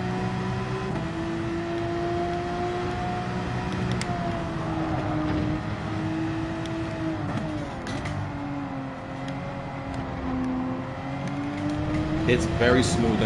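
A race car engine roars steadily, its pitch dropping and rising as the car brakes and speeds up through the bends.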